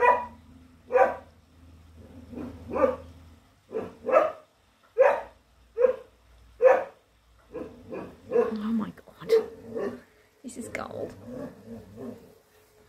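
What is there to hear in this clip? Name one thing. An English Setter barks sharply outside, muffled through a glass door.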